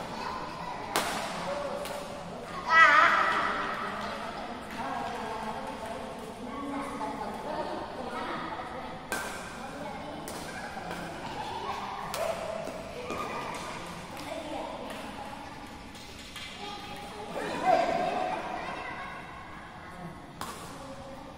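Badminton rackets strike a shuttlecock sharply, again and again, with echoes in a large hall.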